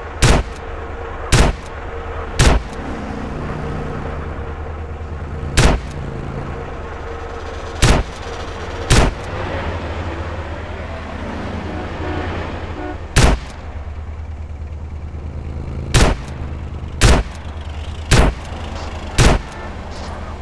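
A rifle fires single loud shots at intervals.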